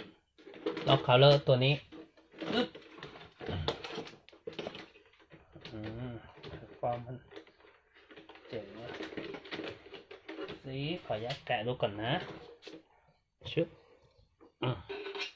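Plastic parts knock and rattle as a toy truck is turned over by hand.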